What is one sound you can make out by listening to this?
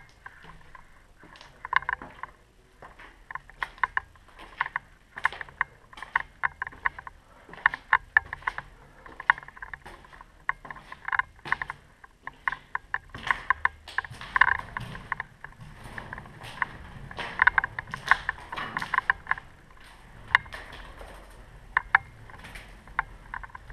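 Footsteps crunch on gritty stairs.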